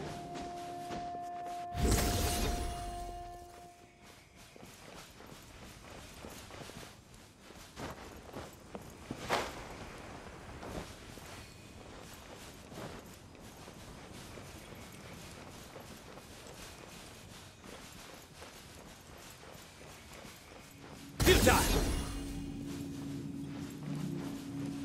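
Footsteps patter quickly over dirt and grass.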